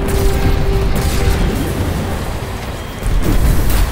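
Energy blasts crackle and sizzle.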